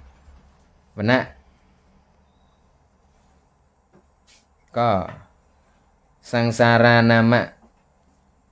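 A man chants slowly into a microphone, in long drawn-out phrases with pauses between them.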